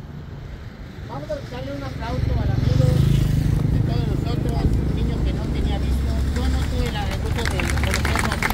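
A crowd of women and men sings together outdoors.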